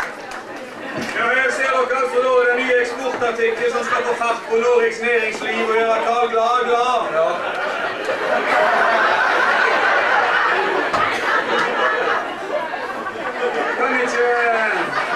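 A man speaks loudly and theatrically on a stage.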